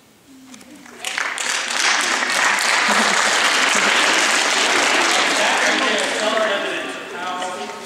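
A crowd of girls cheers and screams loudly.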